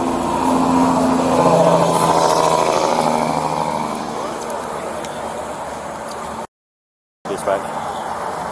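Traffic drives past on a highway.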